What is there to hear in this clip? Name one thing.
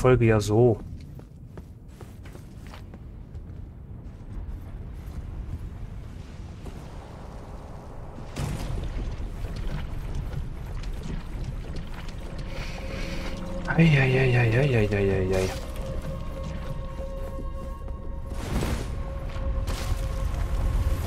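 Armoured footsteps thud on stone.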